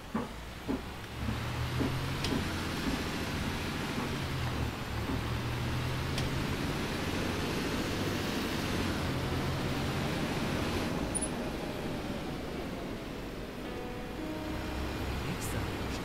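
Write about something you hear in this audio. A diesel city bus pulls away and accelerates.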